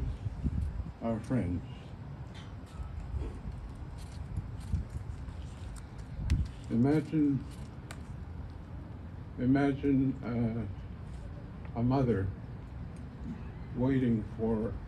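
An elderly man speaks slowly through a microphone and loudspeakers, outdoors.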